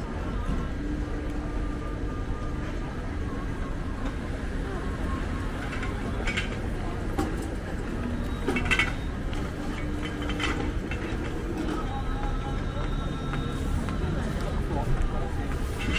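Footsteps patter on pavement.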